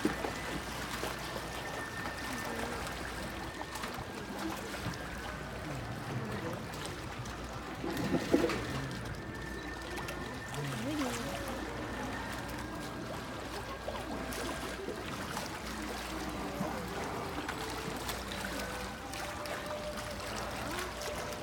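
An orca squeaks and whistles.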